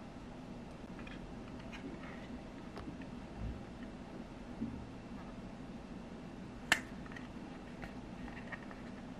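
Plastic toy pieces click and tap together in hands.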